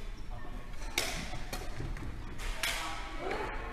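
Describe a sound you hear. Shuttlecocks are struck with rackets, sharp smacks echoing in a large hall.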